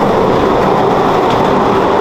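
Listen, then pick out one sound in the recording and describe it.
A large metal door rattles as it slides open.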